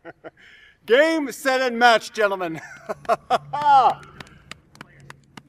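A young man speaks cheerfully, close by.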